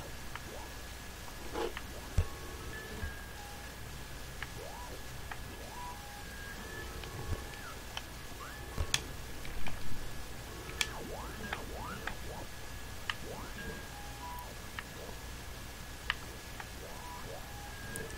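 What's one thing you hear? Light video game music plays with short bright tones and glides.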